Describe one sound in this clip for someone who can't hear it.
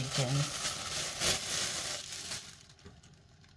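Dry oats pour and rustle into a plastic bowl.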